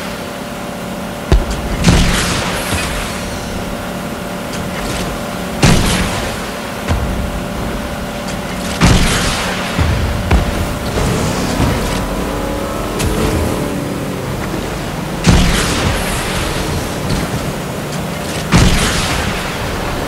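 A motorboat engine hums steadily.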